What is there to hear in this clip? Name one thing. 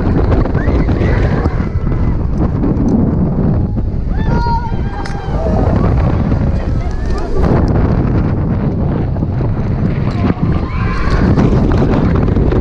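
Young riders scream with excitement.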